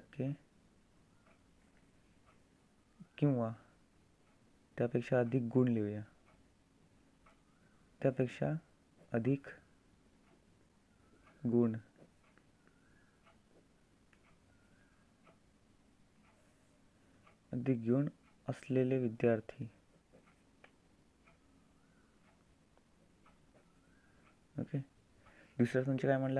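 A pen scratches softly on paper as it writes.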